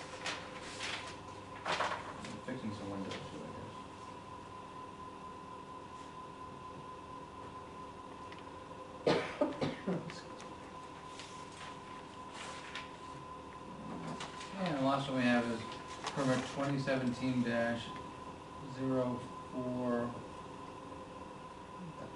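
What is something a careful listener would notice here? Paper rustles on a table.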